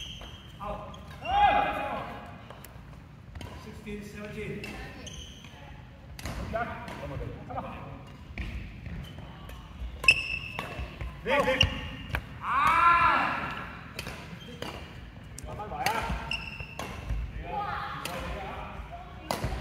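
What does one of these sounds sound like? Men's voices talk and call out in a large echoing hall.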